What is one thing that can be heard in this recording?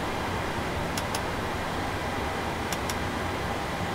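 A switch clicks into place a few times.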